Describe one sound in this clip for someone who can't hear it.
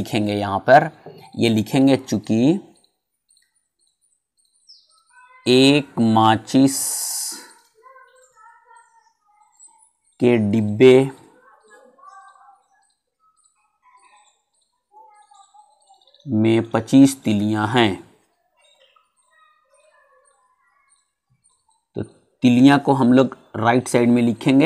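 A middle-aged man speaks calmly and clearly, in short phrases with pauses.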